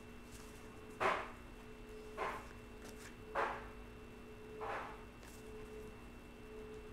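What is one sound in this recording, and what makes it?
Cards shuffle and tap softly in a woman's hands.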